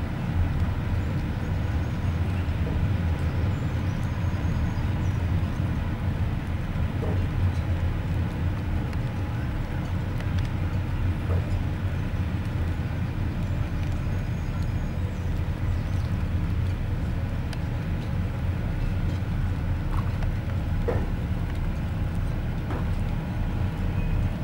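A large ferry's engines rumble low and steady across the water.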